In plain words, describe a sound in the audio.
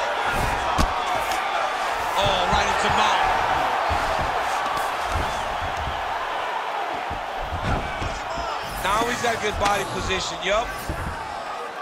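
Ground punches thud heavily into a body.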